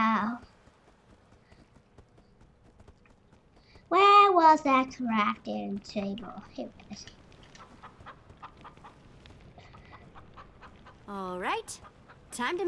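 A young girl talks with animation close to a microphone.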